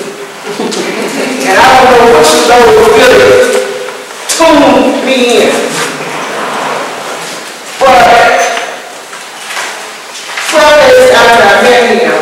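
An older woman speaks calmly and clearly to a group.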